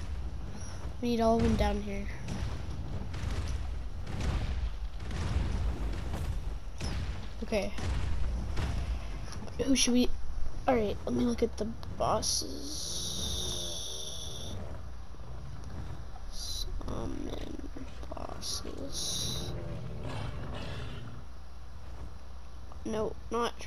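Large beasts roar and growl close by.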